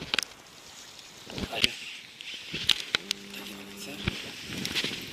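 A fishing reel clicks and whirs.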